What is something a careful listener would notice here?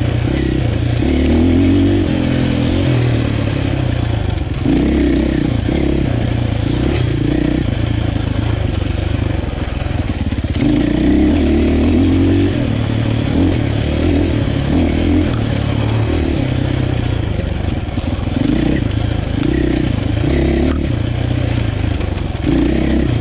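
Tyres crunch over a dirt and stone trail.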